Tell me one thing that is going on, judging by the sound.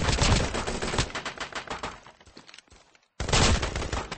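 Glass shatters and tinkles.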